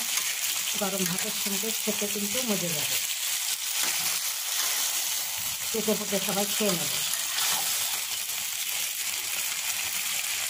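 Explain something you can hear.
Food sizzles and bubbles steadily in a hot pan.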